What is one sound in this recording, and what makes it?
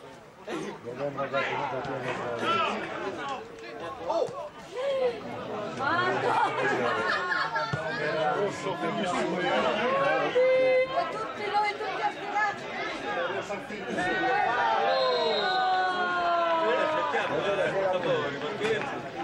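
Men shout to each other across an outdoor football pitch.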